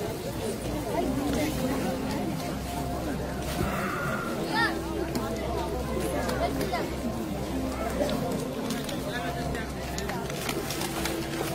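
A crowd of men and women talk and call out all around, outdoors.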